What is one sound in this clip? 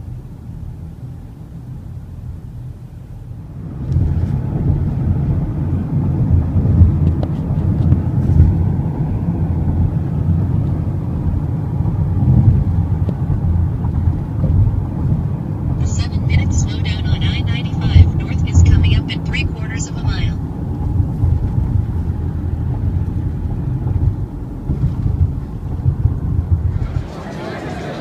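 A car drives along a road with a steady low rumble of engine and tyres.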